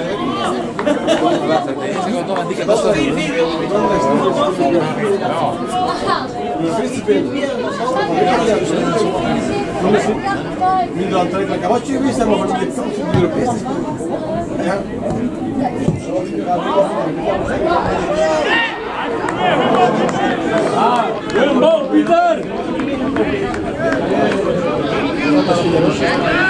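Adult men and women chatter close by, outdoors.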